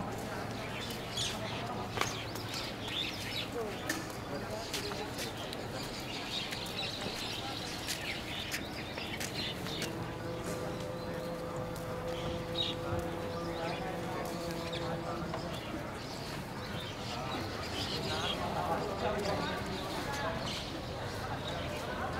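A crowd of men and women chat in the distance outdoors.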